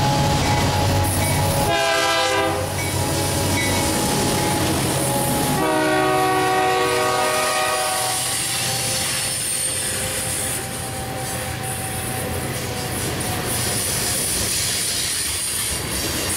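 Freight cars clatter and squeal over the rails.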